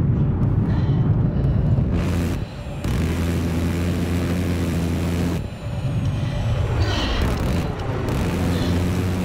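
A jet engine roars steadily.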